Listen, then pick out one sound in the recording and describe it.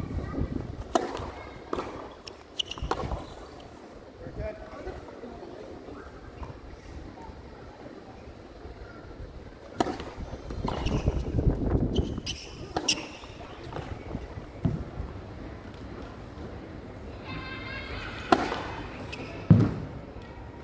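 A tennis ball is struck hard by rackets, back and forth.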